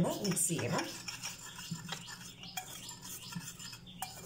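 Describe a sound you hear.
A hand mixes dry flour in a bowl with a soft rustle.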